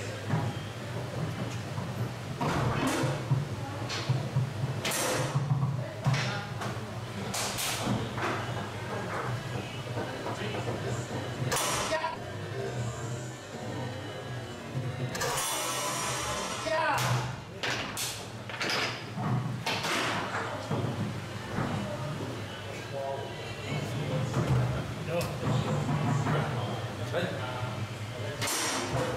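A ball cracks against the figures and walls of a foosball table.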